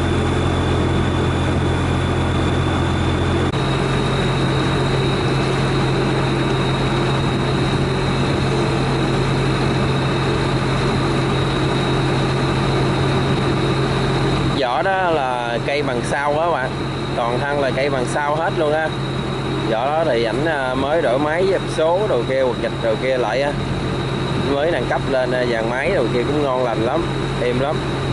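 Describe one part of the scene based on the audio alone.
Waves lap against a boat's hull.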